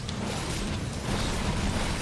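Fire bursts with a loud roar.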